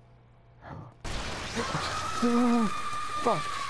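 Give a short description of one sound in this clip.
Something bursts in a wet, loud splatter.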